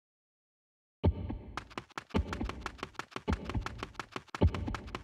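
Upbeat video game music plays.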